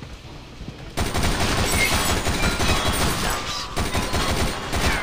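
A machine gun fires in rapid bursts, close and loud.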